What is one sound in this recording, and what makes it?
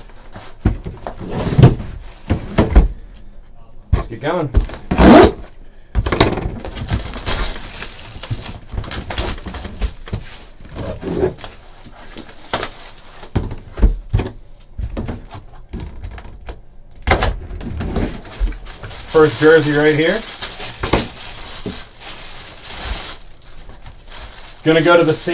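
Cardboard boxes scrape and knock as hands handle them.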